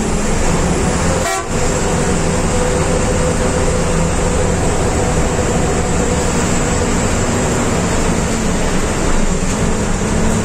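Tyres roar on a road as trucks drive past.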